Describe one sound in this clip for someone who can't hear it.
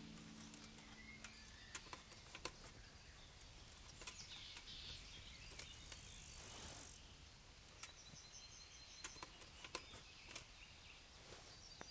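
Armour plates clink and rattle with each movement.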